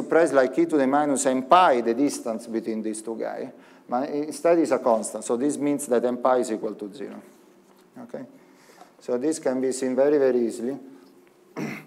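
A man speaks calmly, as if lecturing.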